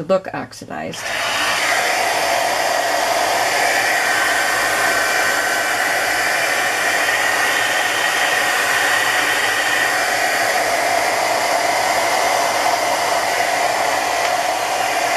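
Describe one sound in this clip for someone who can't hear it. A heat gun blows with a steady, loud whoosh close by.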